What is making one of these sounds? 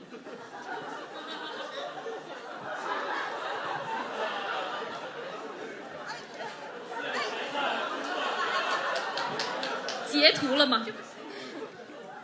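Young women chatter and laugh together.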